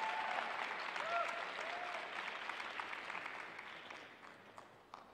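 A crowd applauds in a large echoing arena and slowly fades.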